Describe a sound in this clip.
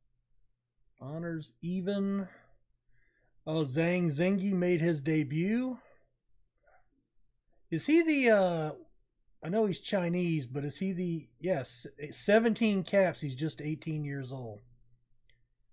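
A man talks calmly and with animation close to a microphone.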